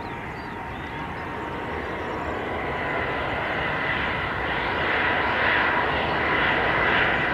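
A jet airliner's engines roar and whine, growing louder as it approaches.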